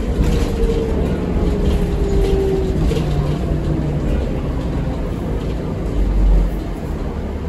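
A bus engine rumbles low and steady as the bus rolls along.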